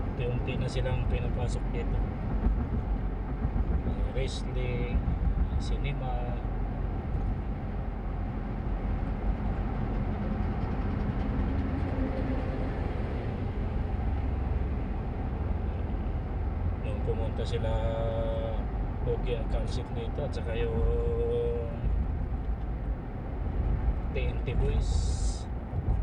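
A car's tyres roll steadily on a road, heard from inside the car.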